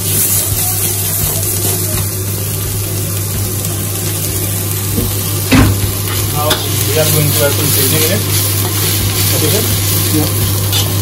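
Vegetables sizzle in a hot wok.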